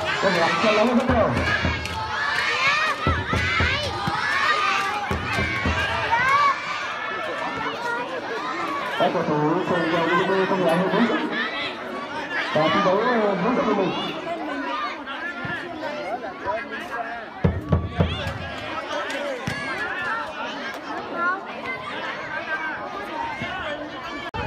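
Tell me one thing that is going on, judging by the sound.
A crowd of children and adults chatters and shouts outdoors.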